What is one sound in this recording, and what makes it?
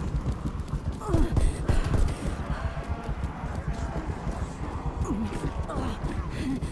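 Zombies growl and groan close by.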